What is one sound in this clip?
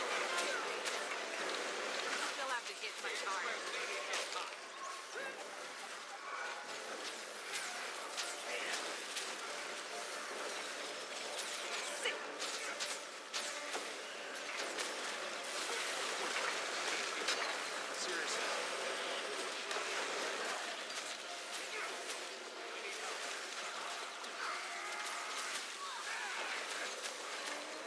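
Magic spells crackle and blast.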